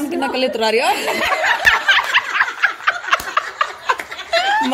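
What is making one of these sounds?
Several women laugh loudly together close by.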